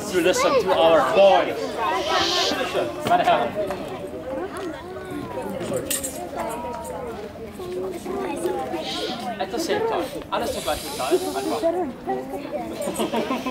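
A man talks with animation to children.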